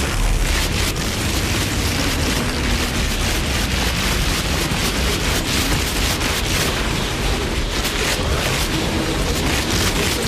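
Electric blasts crackle loudly.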